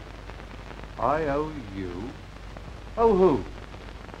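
A man speaks quietly and briefly.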